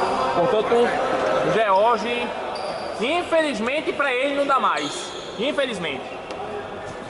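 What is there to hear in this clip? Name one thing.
Men shout loudly across a large echoing hall.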